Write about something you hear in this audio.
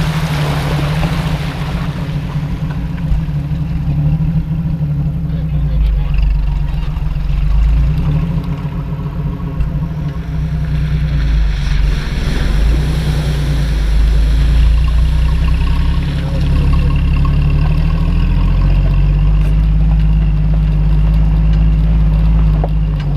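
Tyres roll and crunch over a rough dirt track.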